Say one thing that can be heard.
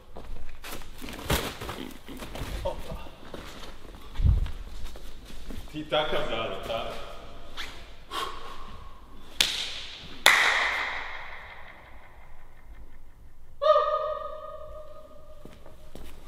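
Sneakers land on a hard floor with sharp thuds that echo through a large empty hall.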